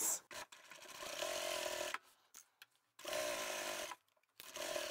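A sewing machine runs in short steady bursts.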